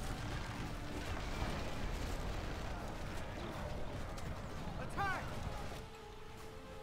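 Weapons clash in a noisy battle.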